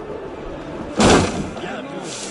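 A body lands with a heavy thud in a pile of hay.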